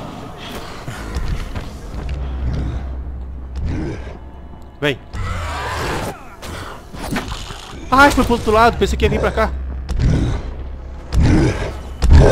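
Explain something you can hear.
A creature growls and snarls nearby.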